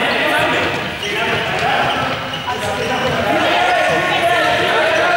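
Basketballs bounce on a hard floor.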